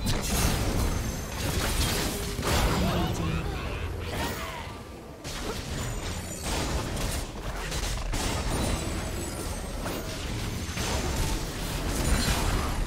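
Game spell effects crackle and burst during a fast fight.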